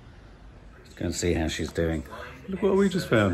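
A man speaks close to a phone microphone.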